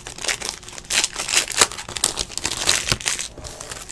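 Stacked cards riffle and tap together.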